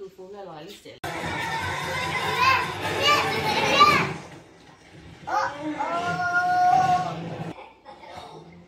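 Young children talk and chatter excitedly nearby.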